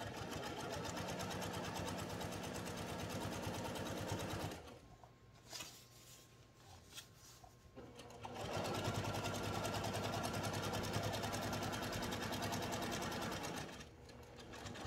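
A sewing machine whirs steadily as it stitches.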